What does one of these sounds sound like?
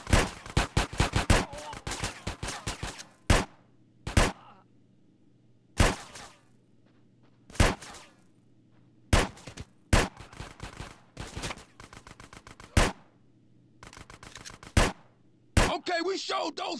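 Gunshots fire in rapid bursts and single shots, echoing in a large hall.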